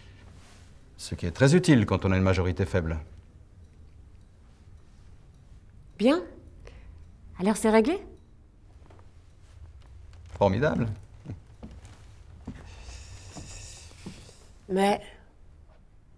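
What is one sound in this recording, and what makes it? A middle-aged man speaks firmly and close by.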